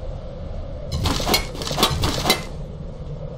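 Heavy blows land with loud thuds and clatter.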